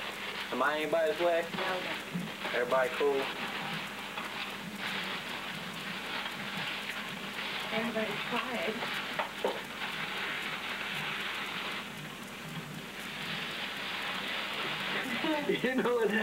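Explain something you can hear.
Paper rustles and tears as a gift is unwrapped.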